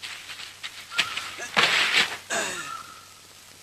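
Blows thud in a close scuffle.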